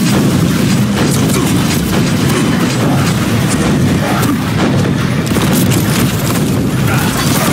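Shotguns fire in rapid blasts.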